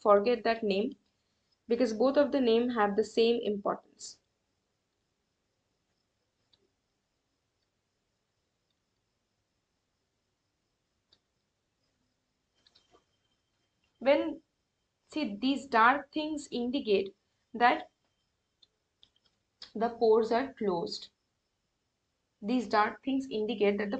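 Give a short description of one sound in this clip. A woman speaks calmly and explains into a close microphone, with long pauses.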